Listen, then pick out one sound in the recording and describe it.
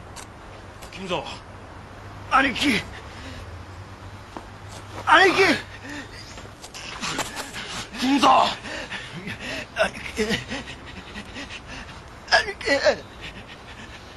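A man speaks in a low, urgent voice close by.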